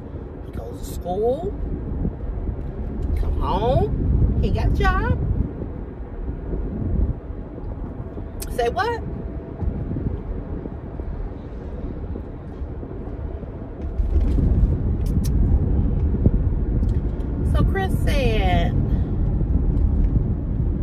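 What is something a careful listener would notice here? A car rumbles steadily along the road.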